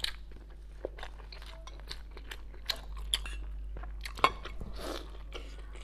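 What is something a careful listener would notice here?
A young woman bites and chews food wetly, close to a microphone.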